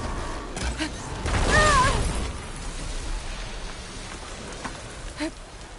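Blows and weapon strikes land in a close fight.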